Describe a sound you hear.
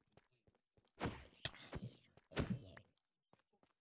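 A creature groans and hisses as it burns and is struck.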